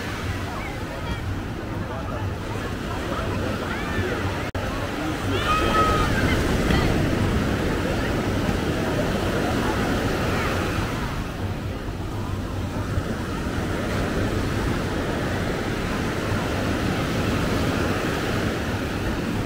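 Waves wash onto the shore steadily.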